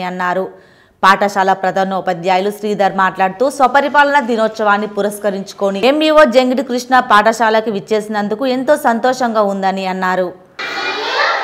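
A group of children sing together in unison, close by.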